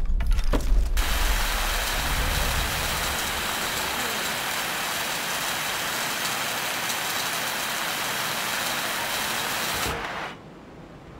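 A cutting torch hisses and crackles steadily as it burns through metal.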